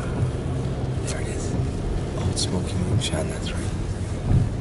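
A windscreen wiper sweeps across the glass with a squeak.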